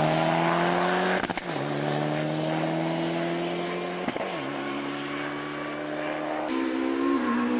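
A rally car engine revs hard and shifts through gears as the car speeds away.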